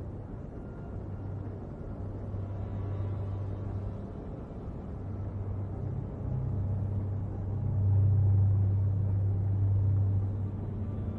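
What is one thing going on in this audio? A spaceship's engines rumble with a deep, steady drone that swells louder.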